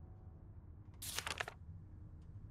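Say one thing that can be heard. A book page turns with a papery swish.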